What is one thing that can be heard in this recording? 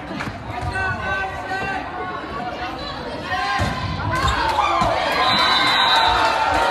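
A crowd in a large echoing gym talks and cheers.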